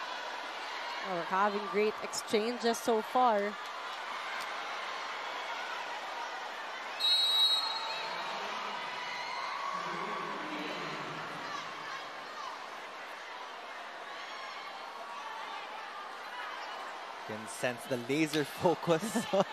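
A crowd cheers and chants loudly.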